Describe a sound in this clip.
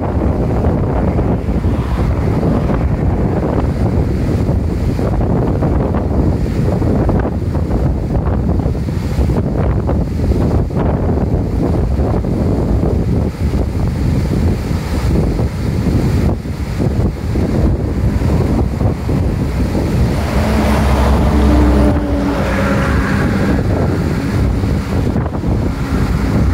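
Water roars and rushes loudly down a dam spillway.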